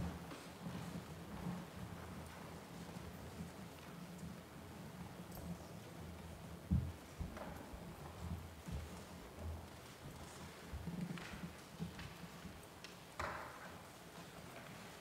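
Footsteps shuffle and thump across a wooden floor in a large echoing hall.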